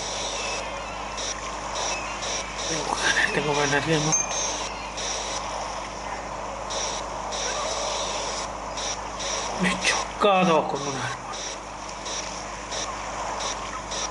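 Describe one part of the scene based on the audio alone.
A jetpack hisses steadily as it lifts off and flies.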